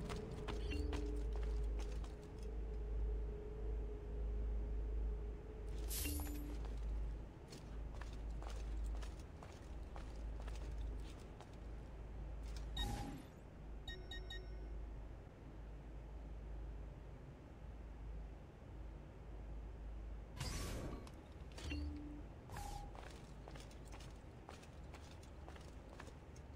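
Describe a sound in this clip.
Footsteps tap on a hard stone floor.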